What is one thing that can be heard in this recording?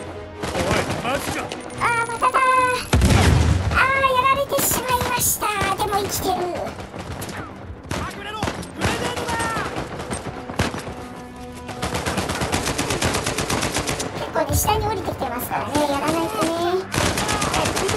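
An automatic rifle fires in rapid bursts close by.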